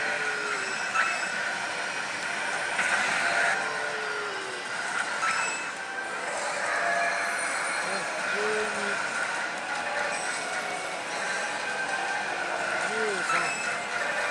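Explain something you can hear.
A slot machine's reels clatter and click as they stop.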